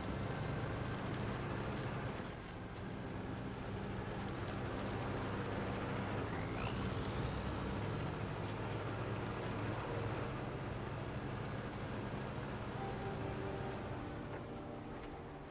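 Tyres crunch over snow and rough ground.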